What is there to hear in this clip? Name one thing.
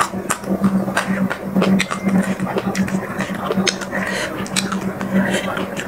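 Crunchy food cracks as a young woman tears it by hand.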